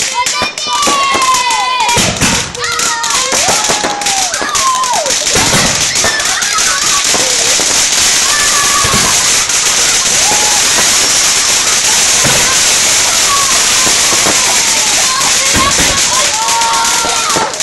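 Fireworks crackle with a steady fizzing hiss.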